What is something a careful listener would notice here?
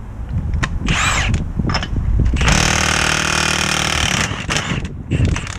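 An impact wrench rattles loudly in short bursts.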